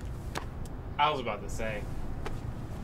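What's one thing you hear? A young man speaks briefly and calmly, close by.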